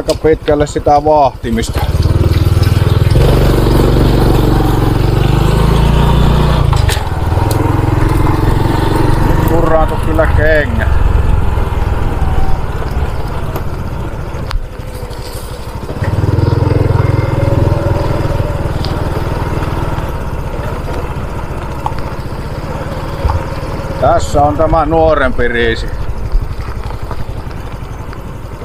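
A motorcycle engine rumbles steadily as it rides along.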